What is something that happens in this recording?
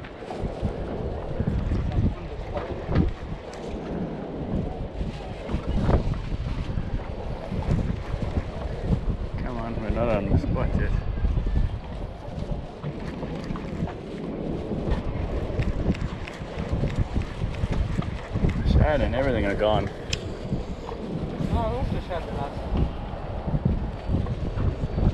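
Wind buffets loudly across open water.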